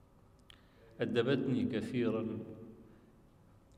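An elderly man speaks slowly into a microphone in an echoing hall.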